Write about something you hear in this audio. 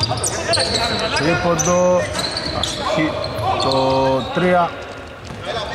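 Men shout calls to each other across the court.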